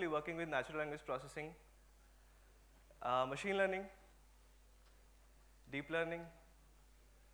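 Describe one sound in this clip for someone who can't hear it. A young man speaks calmly through a microphone, in short phrases with pauses.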